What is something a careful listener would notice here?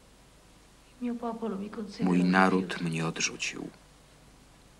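A young woman speaks weakly and with distress, close by.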